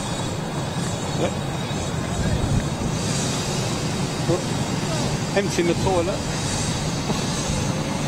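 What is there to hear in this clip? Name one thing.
A jet airliner roars as it climbs away in the distance.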